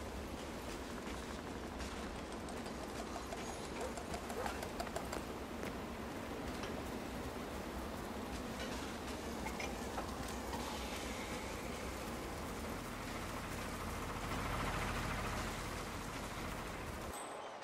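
Footsteps walk steadily over dirt and grass.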